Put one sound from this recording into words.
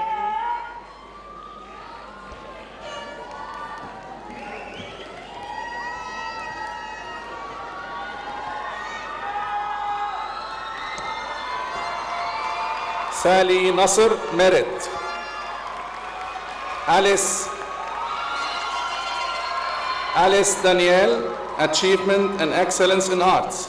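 A man speaks into a microphone through loudspeakers in a large echoing hall.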